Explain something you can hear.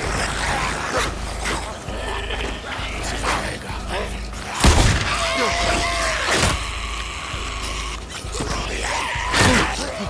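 Heavy blows land with dull, meaty thuds.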